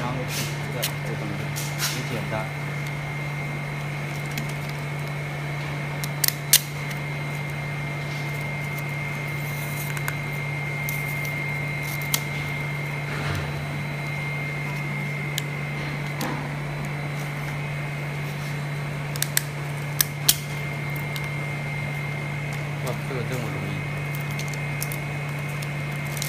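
Glass and plastic panels click and tap as a person handles them.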